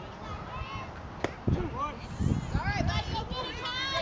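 A bat hits a ball with a sharp crack.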